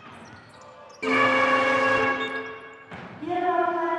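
A loud buzzer sounds in a large echoing arena.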